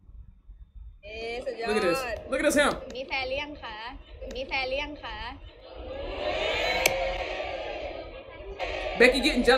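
Young women talk and giggle, heard through a playback.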